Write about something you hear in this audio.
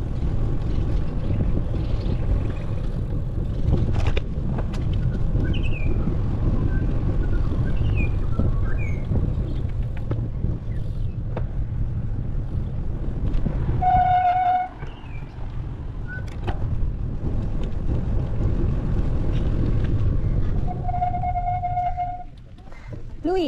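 Wind buffets the microphone as a bicycle rides along.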